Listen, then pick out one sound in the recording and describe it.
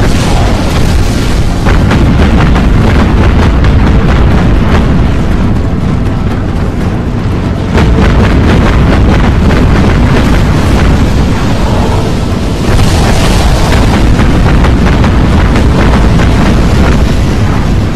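Shells explode with loud, deep blasts.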